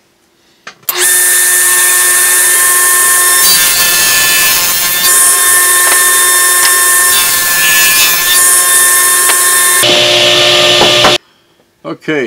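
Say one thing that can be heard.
A table saw whines loudly as it cuts wood.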